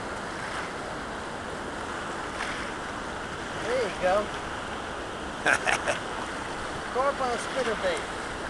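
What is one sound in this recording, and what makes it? A river rushes steadily nearby.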